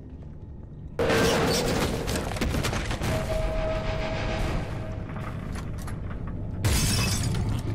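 An axe strikes with a heavy, wet thud.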